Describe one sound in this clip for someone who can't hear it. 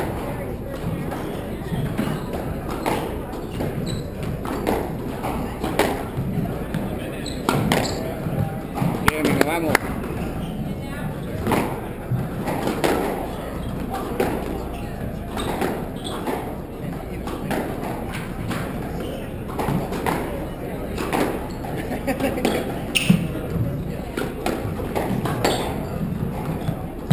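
A squash ball smacks against the walls again and again in an echoing court.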